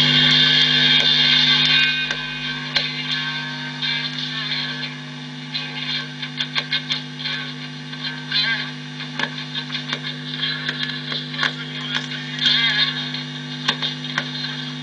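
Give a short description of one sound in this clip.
An amplifier crackles and clicks as its knob is turned.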